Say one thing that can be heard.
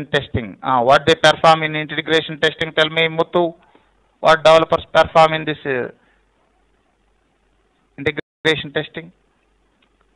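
A man talks calmly into a close microphone, explaining at a steady pace.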